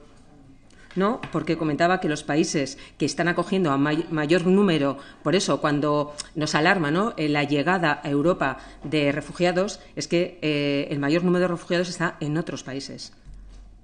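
A woman speaks steadily into a microphone.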